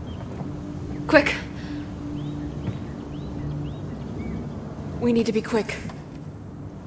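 A second young woman answers anxiously.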